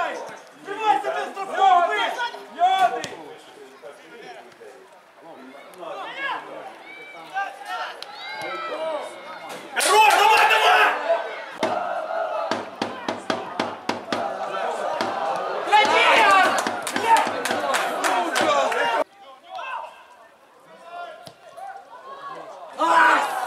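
Men shout to each other on an open outdoor football pitch.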